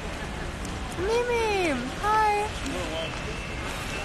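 A teenage girl speaks close by in a lively, sing-song voice.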